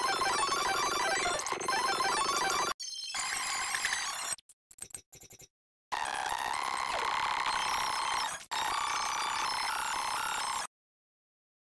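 Upbeat electronic game music plays with bright chiming tones.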